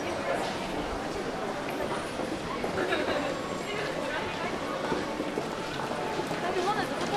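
A crowd of people murmur in a large echoing hall.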